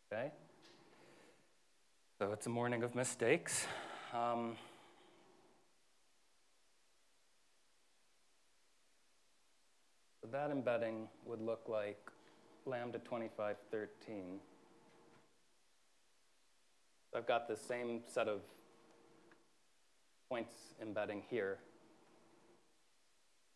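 A man lectures calmly, pausing between phrases.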